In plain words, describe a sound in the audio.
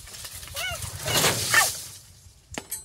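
Dry leafy branches rustle and crackle as a woman handles them.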